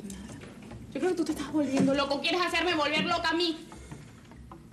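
A young woman shouts back angrily.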